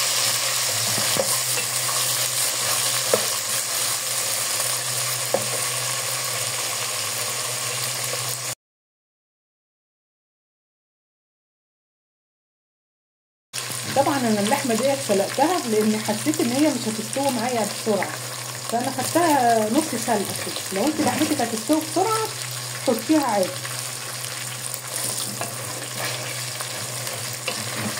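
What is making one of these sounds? Food sizzles and crackles steadily in hot oil.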